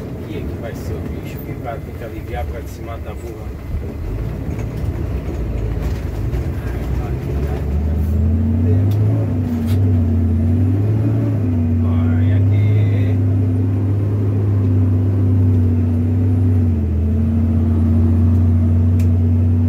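A vehicle engine hums steadily as it drives.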